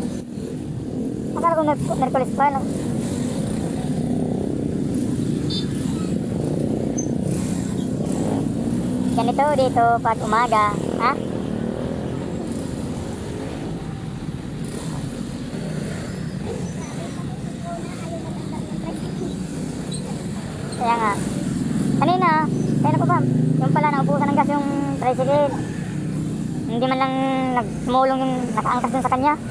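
Motorcycle engines rumble and putter close by in street traffic.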